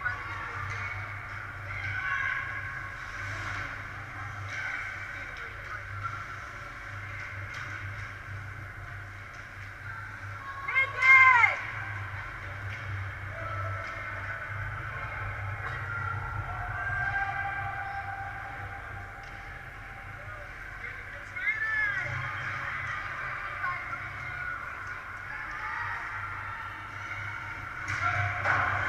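Skate blades scrape and hiss across ice.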